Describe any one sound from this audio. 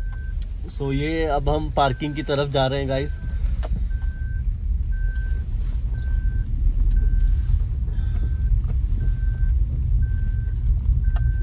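A car engine hums low and steady from inside the car.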